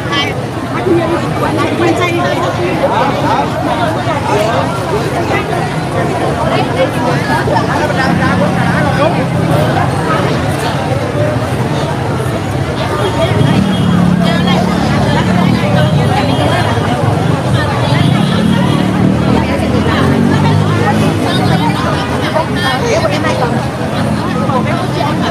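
A large crowd of men and women chatters all around, close by, outdoors.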